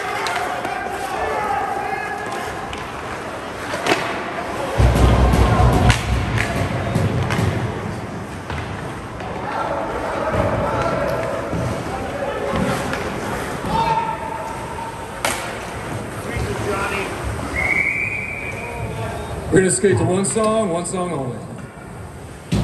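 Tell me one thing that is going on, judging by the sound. Ice skates scrape across the rink.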